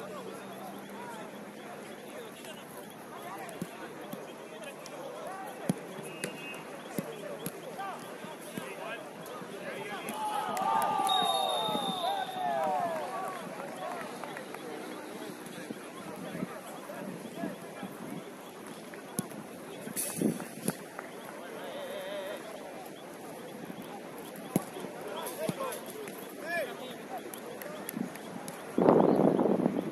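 Players shout and call to each other across an open field outdoors.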